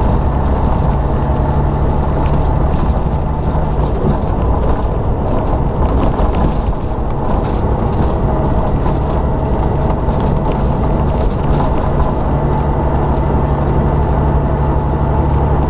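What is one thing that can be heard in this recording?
Wind rushes loudly past the vehicle.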